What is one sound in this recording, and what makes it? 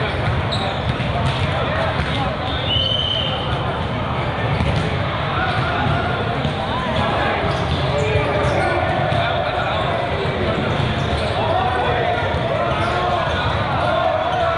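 Volleyballs thump as players hit them.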